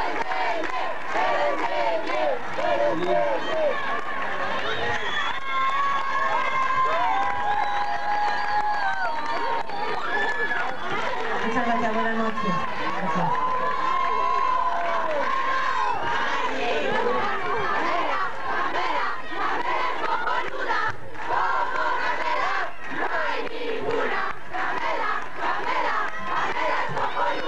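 A man sings into a microphone over the band.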